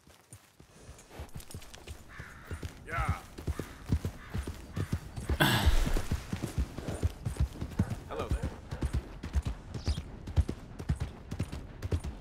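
A horse's hooves thud steadily on grass and dirt as it gallops.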